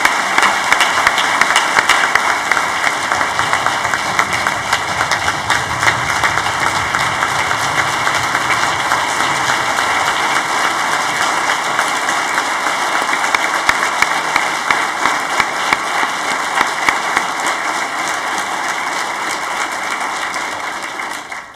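A large audience applauds steadily in an echoing hall, then the applause fades.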